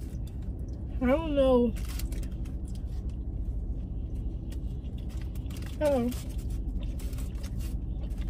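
A paper wrapper rustles and crinkles.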